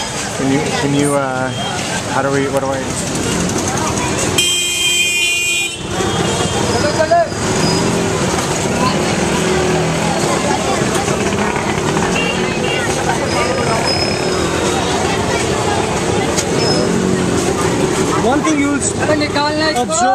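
A busy crowd of people chatter loudly all around, outdoors.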